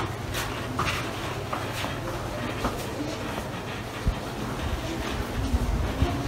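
Footsteps shuffle as people crowd out of a lift.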